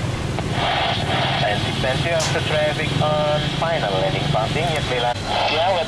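A jet airliner's engines roar loudly overhead during takeoff.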